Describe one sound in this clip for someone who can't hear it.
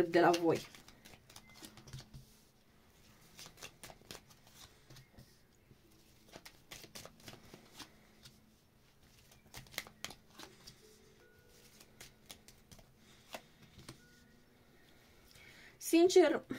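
Cards are laid down one by one on a soft cloth with light taps.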